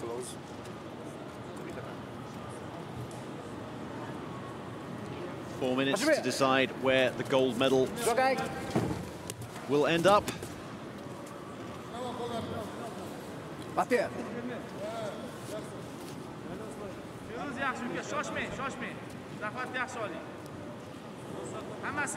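A small crowd murmurs in a large echoing hall.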